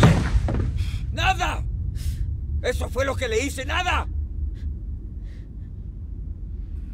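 A young boy groans and whimpers.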